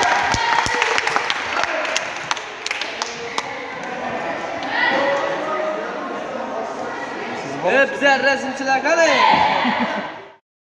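A crowd of children and adults chatters in an echoing hall.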